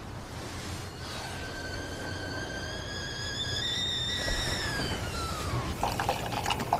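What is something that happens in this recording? A kettle whistles shrilly, then the whistle dies away.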